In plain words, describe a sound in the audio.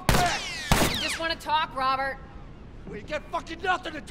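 A man shouts angrily nearby.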